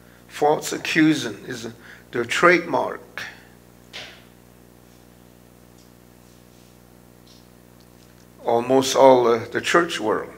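An elderly man speaks calmly through a microphone, pausing between phrases.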